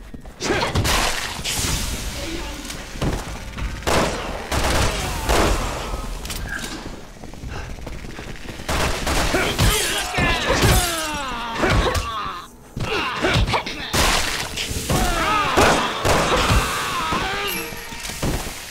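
Pistol shots ring out sharply, echoing off the walls.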